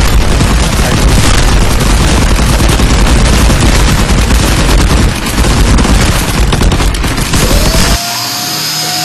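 Rapid gunfire blasts loudly and without pause.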